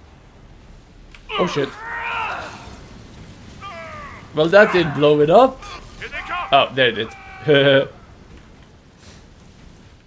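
Flames whoosh and roar in bursts.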